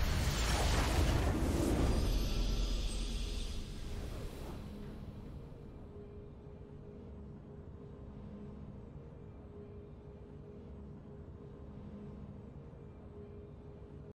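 A triumphant victory fanfare swells, then fades to a soft steady hum.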